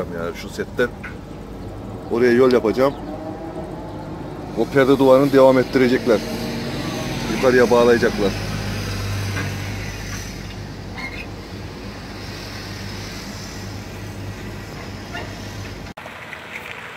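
An excavator engine hums steadily from close by.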